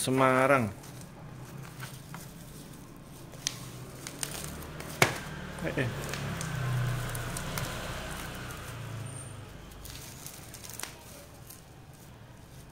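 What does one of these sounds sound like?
Plastic wrapping crinkles and rustles as hands handle it, close by.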